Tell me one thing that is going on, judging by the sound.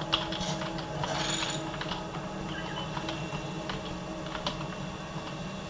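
Game sounds of gunfire and machinery play through small desktop speakers.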